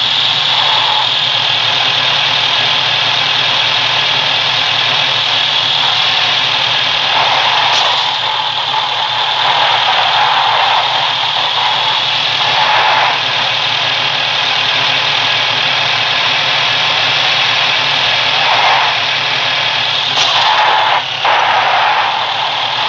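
A vehicle engine roars steadily as a truck drives over rough ground.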